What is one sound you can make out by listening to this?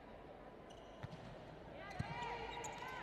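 A volleyball thumps as it is served.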